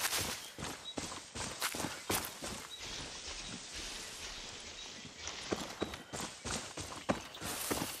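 Leafy branches rustle as someone pushes through bushes.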